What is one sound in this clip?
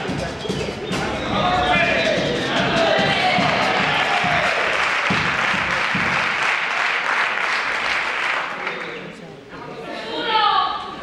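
A group of men sing together loudly in a large hall.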